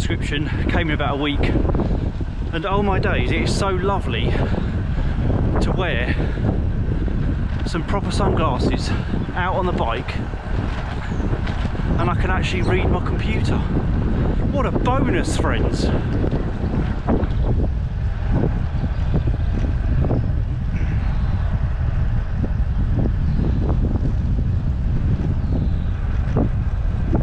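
Bicycle tyres hum on a road.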